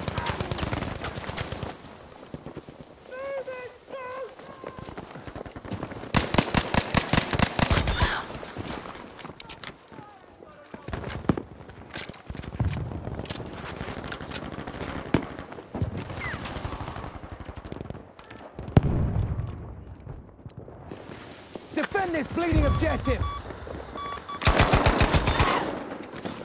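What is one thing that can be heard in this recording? Guns fire in rapid, rattling bursts.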